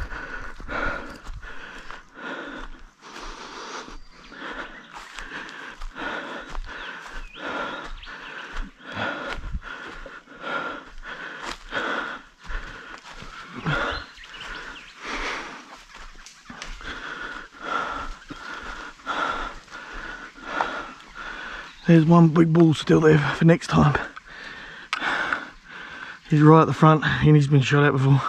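Footsteps crunch and rustle through dry grass at a steady walking pace.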